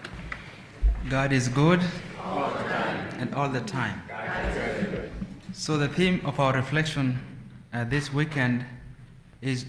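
A man speaks calmly through a microphone in an echoing room.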